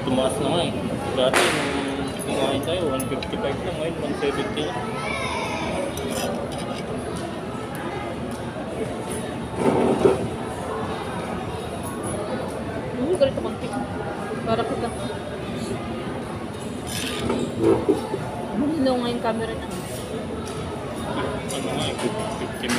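A fork and spoon scrape and clink on a hot plate.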